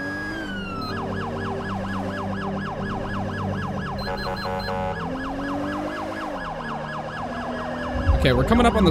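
A police siren switches to a fast, rapid yelp.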